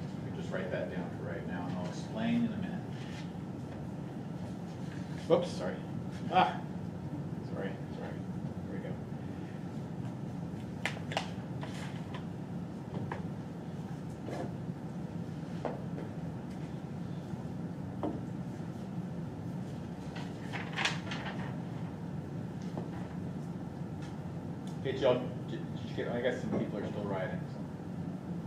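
A low electrical hum runs steadily.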